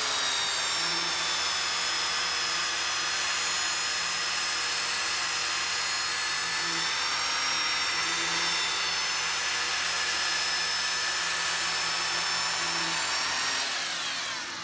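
A power sander whirs loudly, grinding against a spinning piece.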